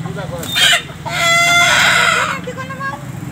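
A rooster crows loudly close by.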